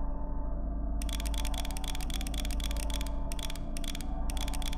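A combination dial clicks rapidly as it turns.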